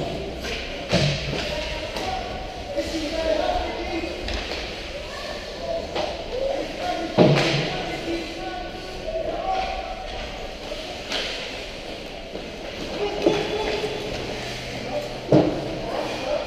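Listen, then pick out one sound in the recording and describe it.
Hockey sticks and pucks knock sharply, echoing in a large hall.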